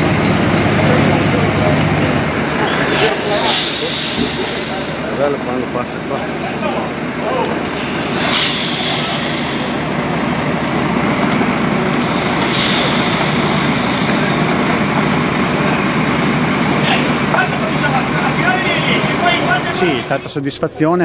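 A crowd murmurs and chatters in the distance.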